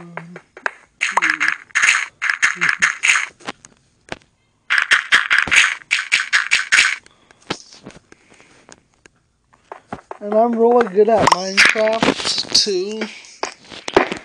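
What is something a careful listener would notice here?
A pickaxe chips at stone in quick, crunching taps.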